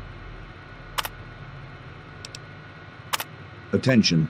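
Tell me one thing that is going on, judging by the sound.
A computer terminal gives short clicks as entries are selected.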